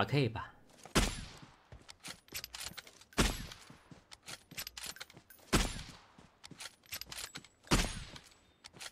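A rifle fires single loud shots, a few seconds apart.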